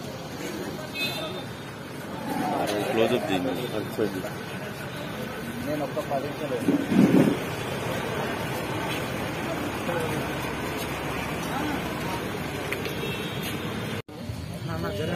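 Men talk nearby in a crowd.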